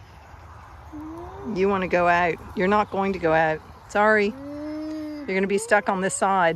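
An alpaca hums close by.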